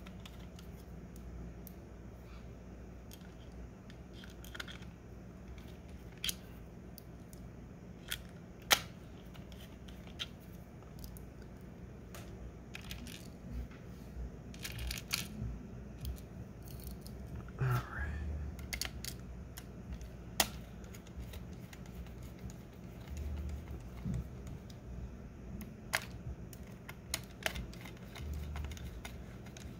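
A screwdriver turns small screws in a plastic casing with faint creaks.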